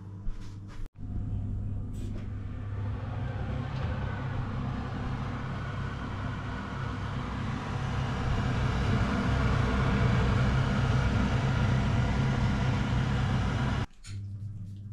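A fan oven hums as it runs.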